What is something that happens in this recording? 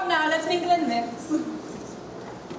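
A young woman sings loudly and clearly nearby.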